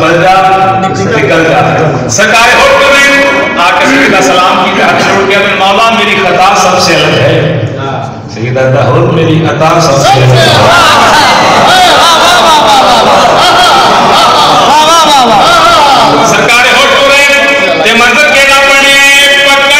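A man recites passionately into a microphone, heard through loudspeakers in an echoing hall.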